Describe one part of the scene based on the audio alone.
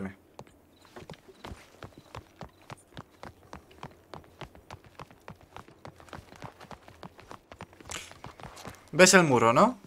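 Footsteps run quickly over cobblestones.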